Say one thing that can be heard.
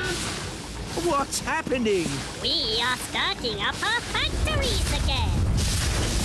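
A small creature chatters in a high, squeaky cartoon voice.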